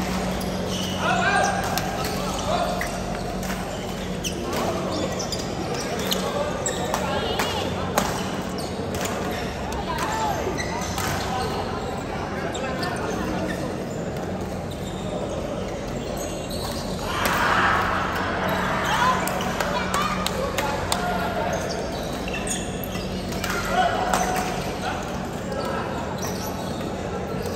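Badminton rackets hit a shuttlecock in a large echoing hall.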